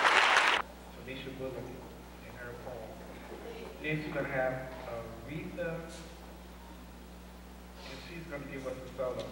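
A man speaks calmly into a microphone in a large hall.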